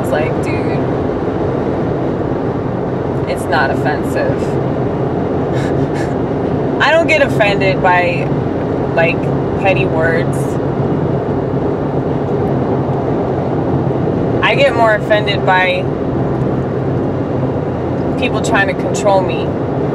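A young woman speaks nearby in short bursts.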